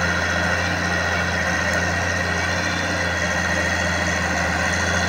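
An excavator engine drones steadily.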